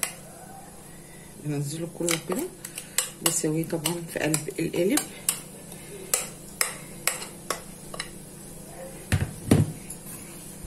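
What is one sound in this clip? A spoon scrapes and knocks against a bowl.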